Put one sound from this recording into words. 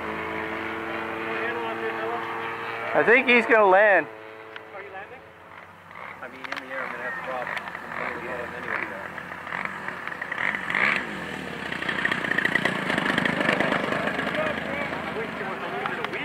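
A small model airplane engine buzzes steadily.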